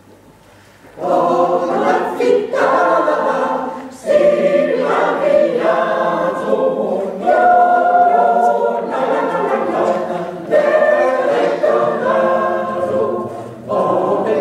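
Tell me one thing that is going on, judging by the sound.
A mixed choir of men and women sings together in a large hall.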